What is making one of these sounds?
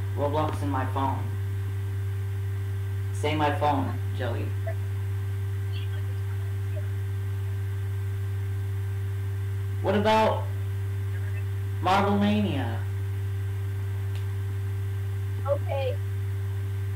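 A teenage boy speaks casually in short bursts, close to a microphone.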